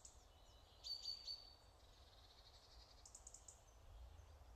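Short bright game chimes ring out several times.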